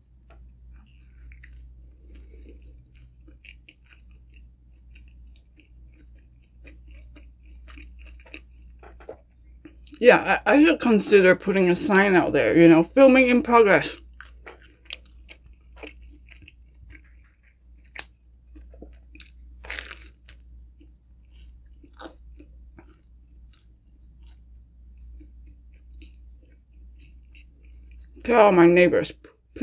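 A young woman chews food close to a microphone with soft, wet mouth sounds.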